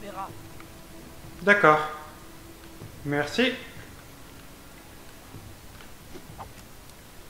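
Small footsteps patter quickly across a hard floor.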